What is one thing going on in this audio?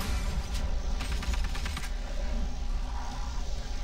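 Blasts and impacts crash during a fight.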